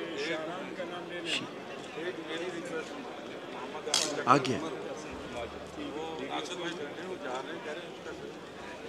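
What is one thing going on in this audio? Several men talk over one another in a large room.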